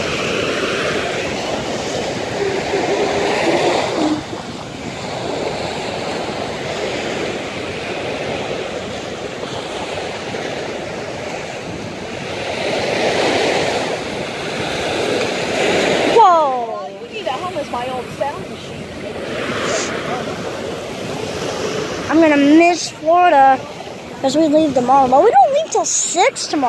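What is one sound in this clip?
Waves break and wash up onto the shore.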